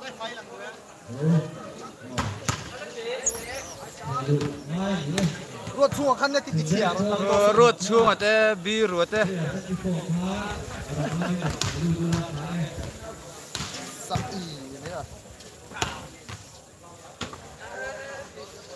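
Young men shout and call out to each other across a court outdoors.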